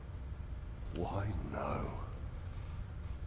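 A man speaks softly and breathlessly, close by.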